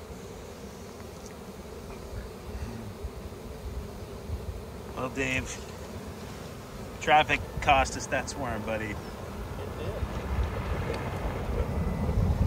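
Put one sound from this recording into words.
A dense swarm of bees buzzes steadily close by.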